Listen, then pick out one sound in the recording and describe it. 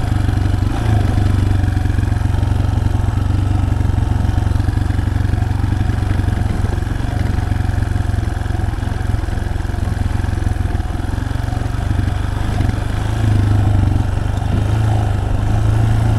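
A motorcycle engine rumbles steadily at low speed, rising in pitch now and then.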